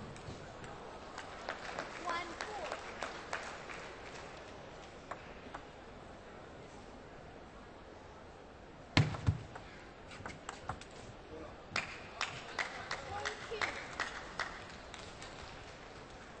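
A crowd cheers and applauds after a point.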